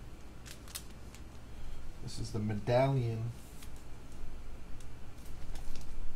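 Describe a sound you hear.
A plastic sleeve crinkles as a card slides into it.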